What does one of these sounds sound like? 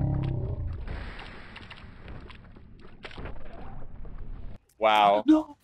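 Game sound effects crackle and thump.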